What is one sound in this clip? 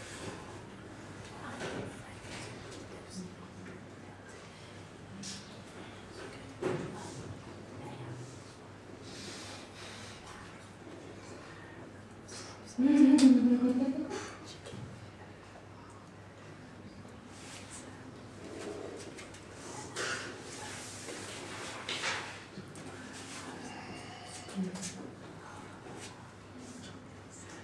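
Hands rustle and pat softly against clothing.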